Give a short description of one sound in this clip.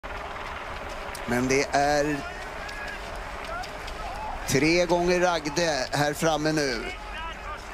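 Skis swish and scrape over packed snow as a group of skiers glides past.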